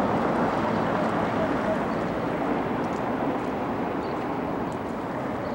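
Wind rushes steadily outdoors.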